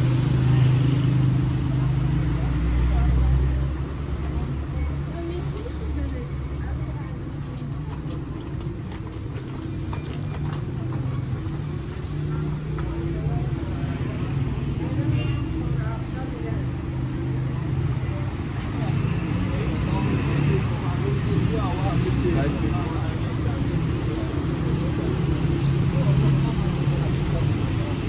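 Traffic hums steadily nearby outdoors.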